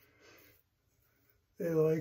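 A razor scrapes across stubble.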